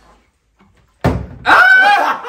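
A bottle lands upright on a table with a thud.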